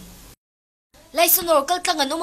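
A young woman speaks urgently, close by.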